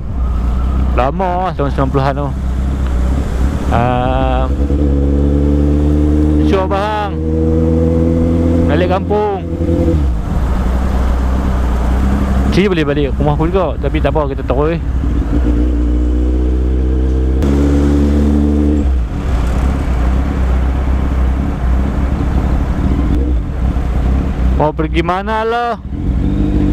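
A motorcycle engine hums steadily and revs up and down as it changes gears.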